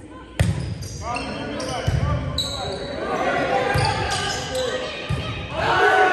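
A crowd of spectators cheers in an echoing gym.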